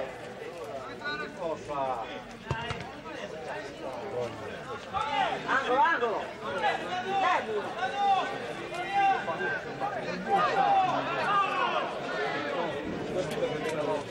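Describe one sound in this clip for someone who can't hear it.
Spectators in a stand talk and call out outdoors.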